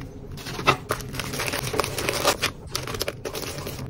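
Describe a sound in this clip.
Tissue paper rustles and crinkles as hands wrap a package.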